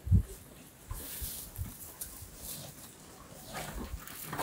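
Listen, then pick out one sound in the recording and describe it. A cow munches and rustles dry hay up close.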